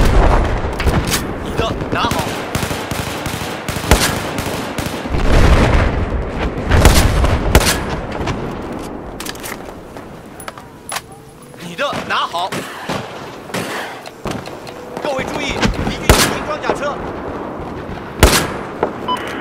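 Rifle shots crack loudly, one at a time, with a rolling echo.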